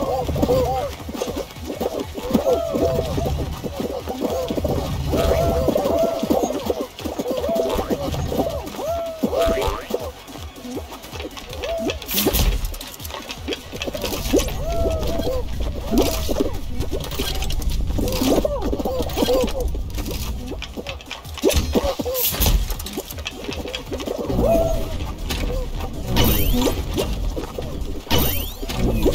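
A video game plays bouncy sound effects.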